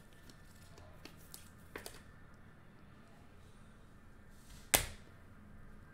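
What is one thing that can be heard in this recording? A plastic card case clicks and rustles as it is handled.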